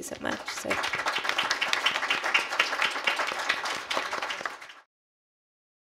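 An audience claps loudly in a room, then the clapping stops.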